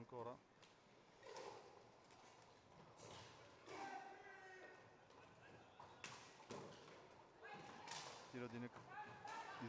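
Roller skates roll and scrape across a hard floor in a large echoing hall.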